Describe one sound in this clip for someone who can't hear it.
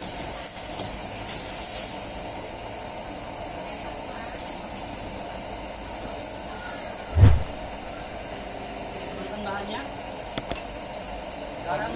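Liquid bubbles in a wok.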